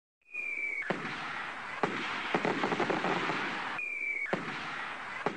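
Fireworks whistle as they shoot up.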